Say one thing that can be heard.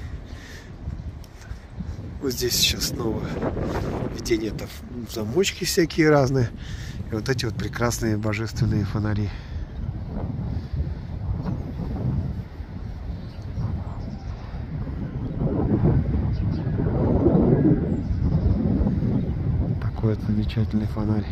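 Wind blows outdoors, rumbling against the microphone.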